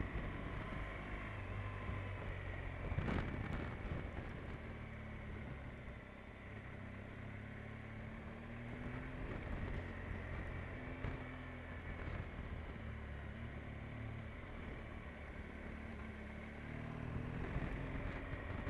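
A motorcycle engine hums steadily and rises and falls in pitch as the bike rides along.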